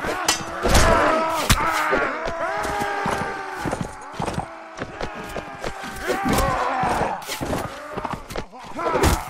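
Steel weapons clash and clang in a fight.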